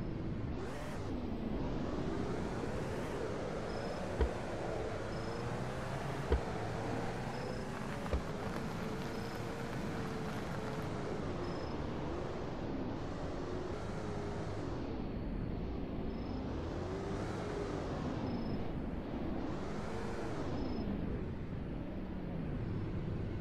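A car engine revs up and down as the car speeds along and slows.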